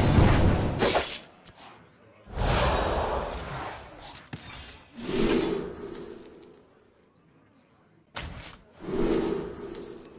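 Game sound effects whoosh and chime as cards are played and revealed.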